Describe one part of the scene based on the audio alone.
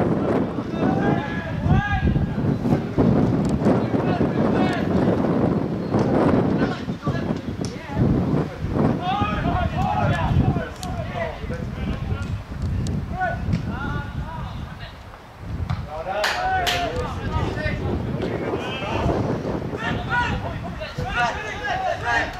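Young men shout to each other in the distance, outdoors on an open field.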